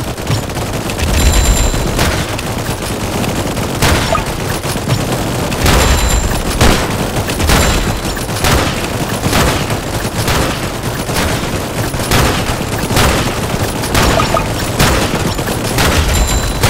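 Rifles fire in sharp shots at a steady pace.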